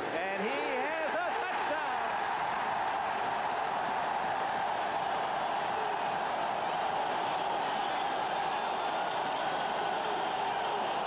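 A large stadium crowd roars and cheers loudly throughout.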